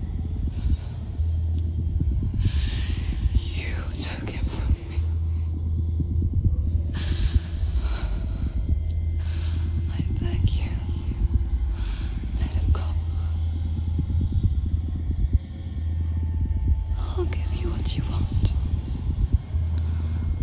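A young woman speaks in a tense, shaky voice close by.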